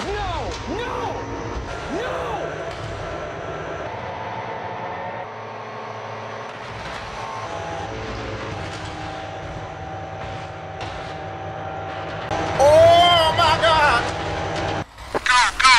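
A train crashes into a car with a crunching of metal.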